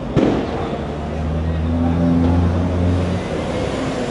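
A bus rumbles past with its engine droning.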